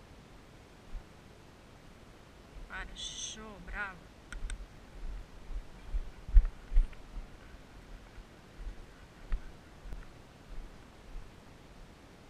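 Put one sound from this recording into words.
Horses' hooves thud on soft sand as they trot and canter.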